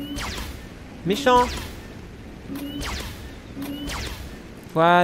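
A laser blaster fires with sharp electronic zaps.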